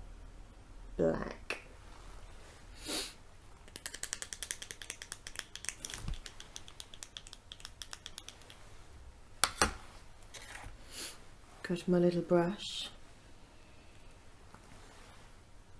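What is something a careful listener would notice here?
Small plastic items click and tap in a woman's hands.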